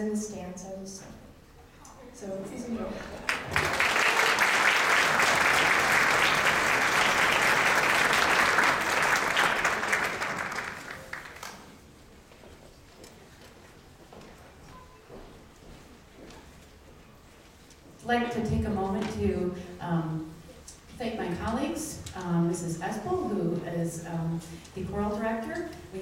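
A string orchestra plays in a large hall.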